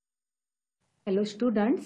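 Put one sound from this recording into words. A middle-aged woman speaks calmly and clearly into a microphone, close by.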